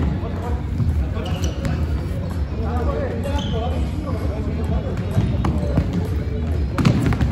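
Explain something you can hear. Young men shout and call to each other across the hall.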